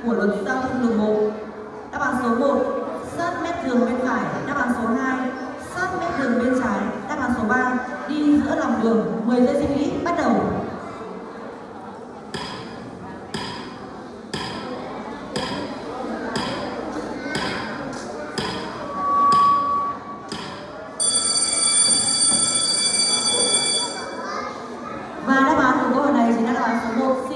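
A woman speaks with animation through a microphone and loudspeakers in an echoing hall.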